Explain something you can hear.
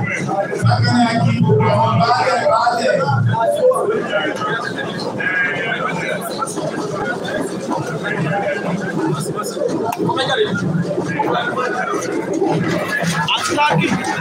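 Several voices chatter in a room.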